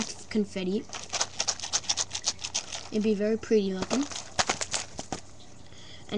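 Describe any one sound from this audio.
Candies rattle in a plastic jar.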